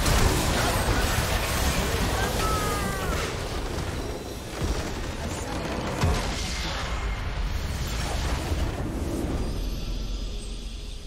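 Game spell effects crackle and blast in a dense, noisy fight.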